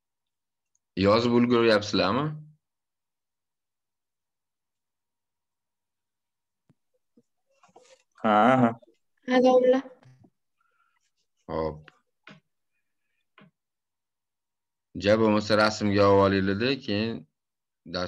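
A man speaks calmly over an online call, in short bursts with long pauses.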